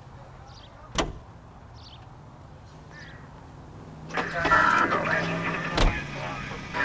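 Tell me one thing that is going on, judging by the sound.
A car door opens and then shuts with a thud.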